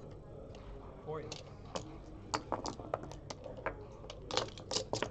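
Game pieces click against each other as they are moved on a board.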